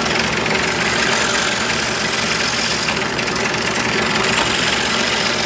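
A scroll saw buzzes steadily as it cuts through wood.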